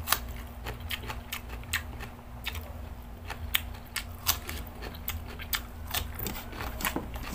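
A man chews food noisily with wet smacking sounds close to the microphone.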